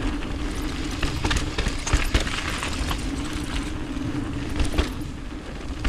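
A bike frame rattles and clatters over bumps.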